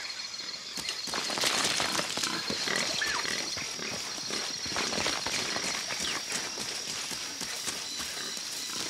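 Footsteps run on a dirt path through undergrowth.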